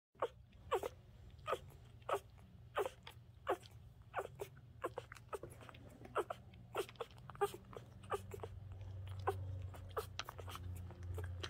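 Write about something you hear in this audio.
Newborn puppies squeak and whimper close by.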